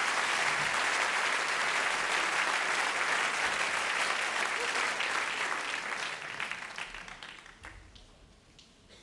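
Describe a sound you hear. A large audience claps and cheers loudly, then the applause fades.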